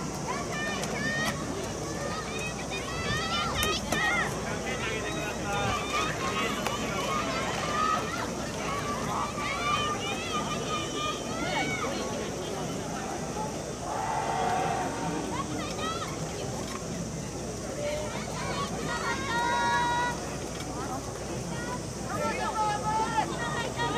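A large crowd of people chatters and calls out at a distance in an open-air stadium.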